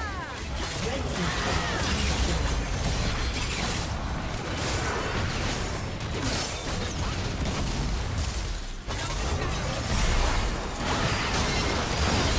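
Magic blasts and spell effects crackle and boom in a busy fight.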